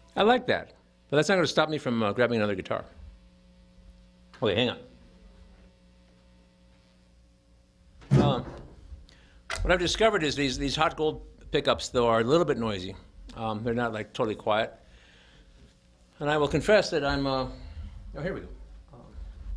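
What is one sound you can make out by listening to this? An electric guitar plays short, bright riffs through an amplifier, with pauses between them.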